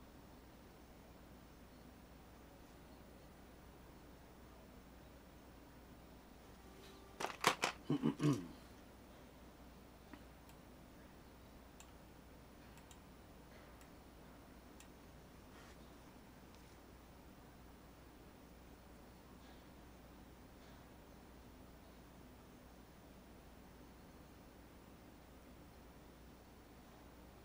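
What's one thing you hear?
A brush softly strokes paint onto canvas.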